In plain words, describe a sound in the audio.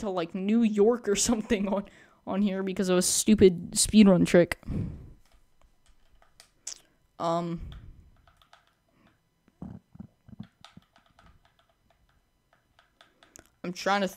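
Short menu blips sound as a selection cursor moves between options.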